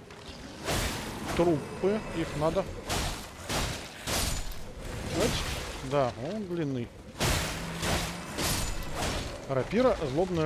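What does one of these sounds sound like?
A blade swishes and clangs against an enemy in quick strikes.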